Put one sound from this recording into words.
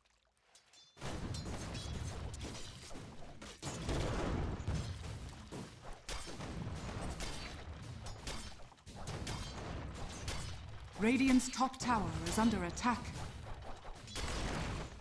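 Video game combat sounds clash and thud in a fast fight.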